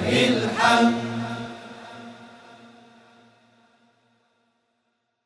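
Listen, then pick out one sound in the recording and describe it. A group of men sings a final held note together, which slowly fades away.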